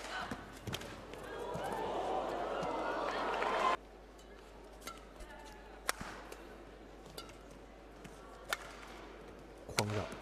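A player's shoes squeak on the court floor.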